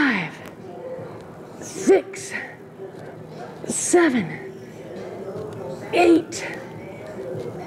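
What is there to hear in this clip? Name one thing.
A young woman breathes out sharply between movements.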